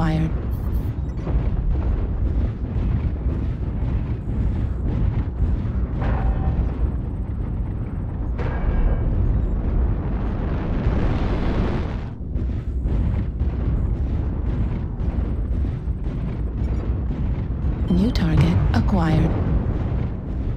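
Heavy metal footsteps thud at a steady pace.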